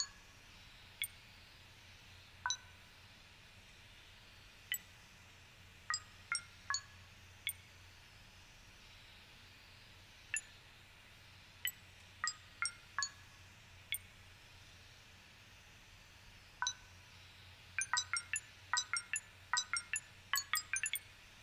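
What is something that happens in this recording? Short electronic beeps sound as buttons on a keypad are pressed.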